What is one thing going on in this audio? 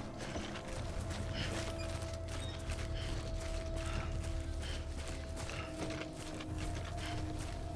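Heavy footsteps crunch steadily over rough ground.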